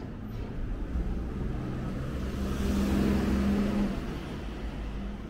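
A small truck drives past with its engine rumbling.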